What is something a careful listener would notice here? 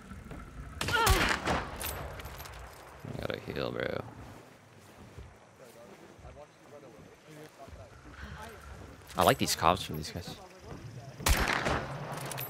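Gunshots bang sharply, a few times.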